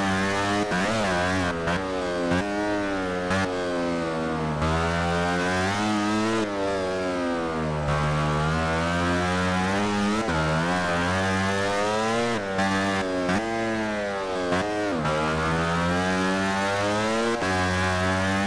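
A motorcycle engine screams at high revs, rising and falling as gears shift.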